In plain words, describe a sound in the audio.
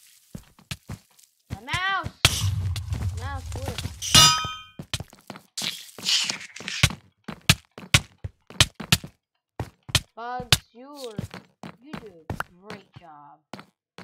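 Sword strikes land with quick, sharp thuds.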